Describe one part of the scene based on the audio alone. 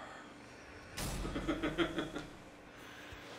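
A man chuckles softly close by.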